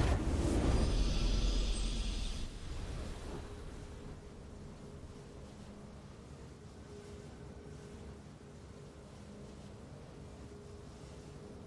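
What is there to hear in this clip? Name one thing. A triumphant victory fanfare swells.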